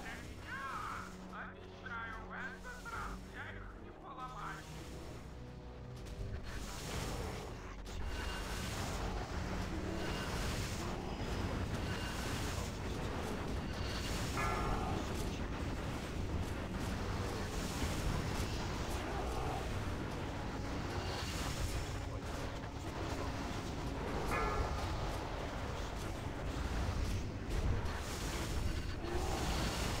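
Spell effects and combat sounds crash and clang throughout a game battle.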